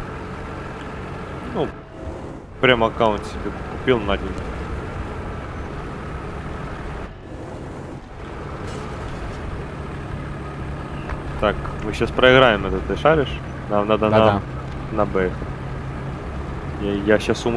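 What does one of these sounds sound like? A tank engine rumbles steadily as the tank drives along.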